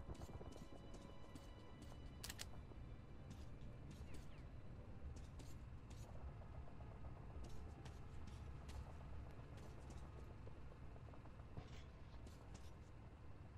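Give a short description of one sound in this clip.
Heavy boots step steadily on a hard floor.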